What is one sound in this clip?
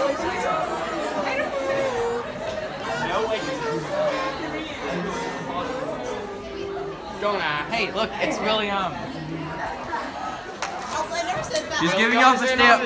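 A crowd of teenagers chatter and talk loudly nearby in an echoing hall.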